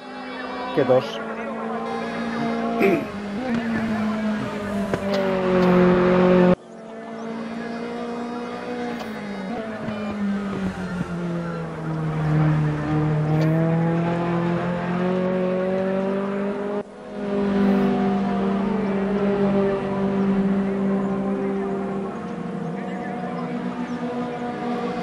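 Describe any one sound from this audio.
A racing car's engine roars loudly, its pitch rising and falling as it speeds up and slows through the corners.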